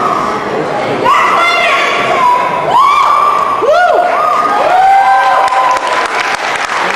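Shrill whoops and whistles rise from the crowd.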